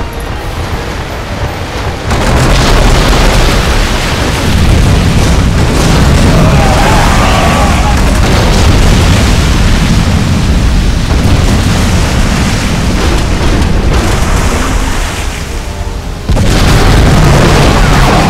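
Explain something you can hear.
Cannons fire in booming volleys.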